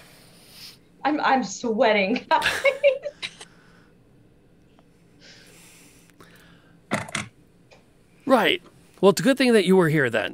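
Several women talk and laugh over an online call.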